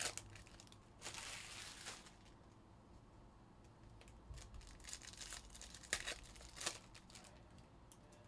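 Plastic pack wrappers crinkle and tear.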